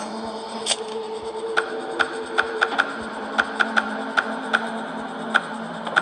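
Fingers tap and slide on a touchscreen.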